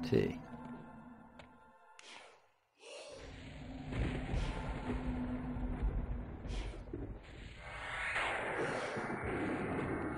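A magic spell crackles and shimmers.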